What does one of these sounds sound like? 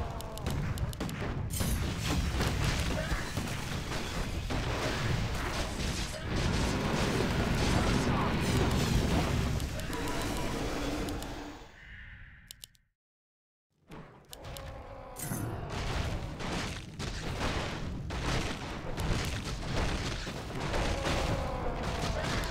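Weapons clash and magic spells crackle in a busy battle.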